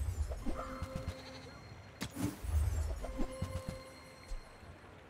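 Short tinkling chimes ring out.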